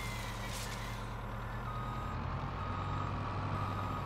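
A tree trunk crashes to the ground.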